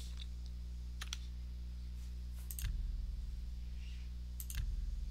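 Short menu clicks sound.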